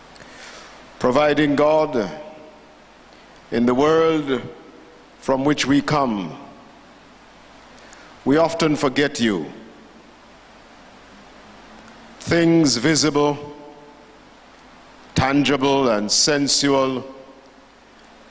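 An elderly man speaks slowly and solemnly into a microphone, with pauses between phrases.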